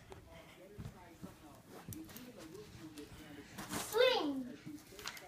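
A girl's running footsteps thud on a carpeted floor.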